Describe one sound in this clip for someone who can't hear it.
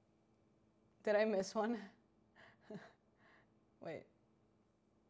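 A young woman speaks with animation, close to a clip-on microphone.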